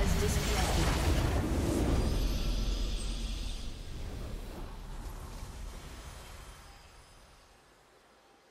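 A triumphant game victory fanfare swells and then fades away.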